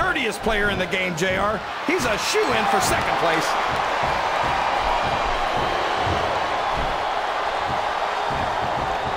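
A large crowd roars and cheers steadily in an echoing arena.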